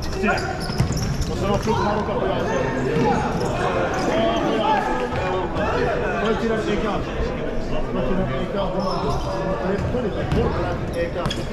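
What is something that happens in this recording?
Shoes squeak and thump on a hard court floor.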